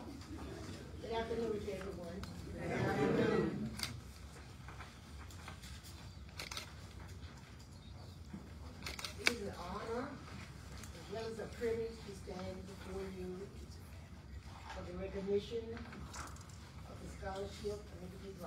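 An elderly woman speaks calmly and clearly.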